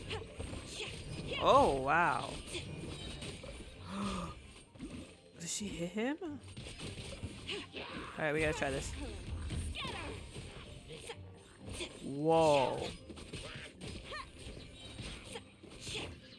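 Game sword strikes and magic blasts clash and burst.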